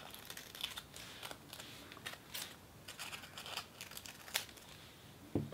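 Scissors snip through thin paper close up.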